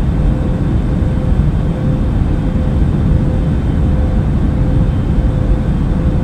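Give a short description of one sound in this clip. An aircraft cabin hums with a steady low engine drone.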